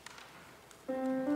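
A choir begins singing a sustained note.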